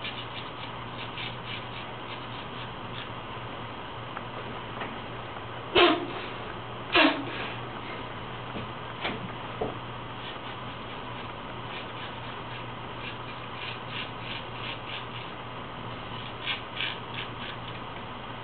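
A razor scrapes across stubble in short, rasping strokes.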